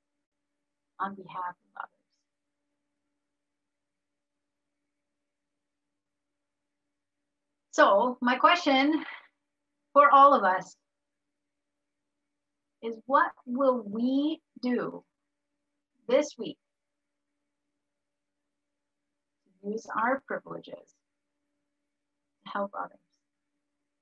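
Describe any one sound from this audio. A woman speaks calmly over an online call, in short bursts with long pauses.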